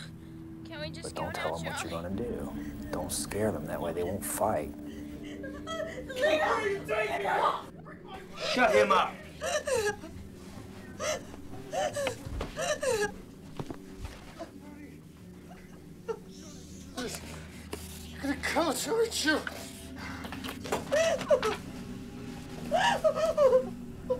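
Several women talk over one another with animation, close by.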